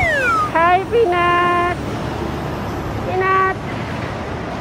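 A dog howls and yowls up close.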